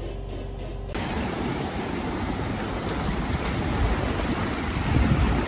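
Waves wash over rocks and break on the shore.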